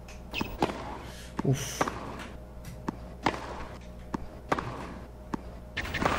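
A tennis ball is struck sharply by a racket, back and forth.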